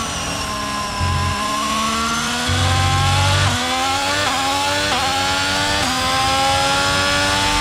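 A Formula One car engine screams as the car accelerates hard through upshifts.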